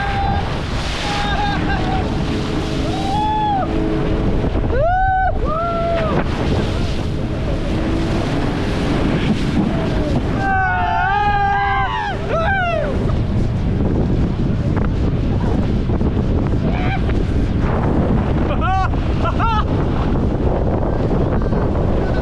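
Water splashes and rushes under an inflatable ride.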